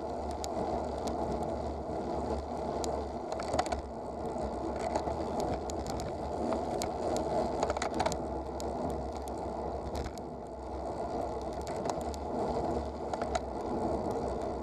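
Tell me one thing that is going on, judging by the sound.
Tyres roll and rattle over a rough road surface.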